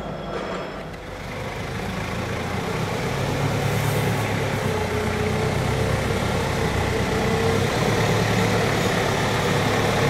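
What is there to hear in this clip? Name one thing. A forklift engine hums and rumbles as the forklift drives forward.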